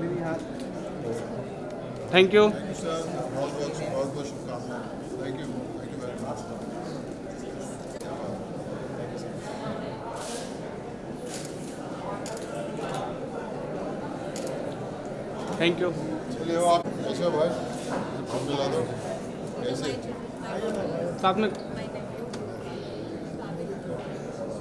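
A crowd of people chatters steadily in the background.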